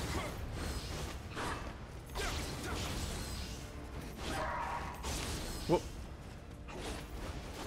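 Blades swish and clash in quick strikes.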